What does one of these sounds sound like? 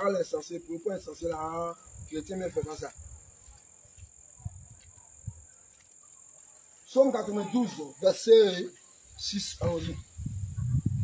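A man speaks aloud nearby, pausing between phrases.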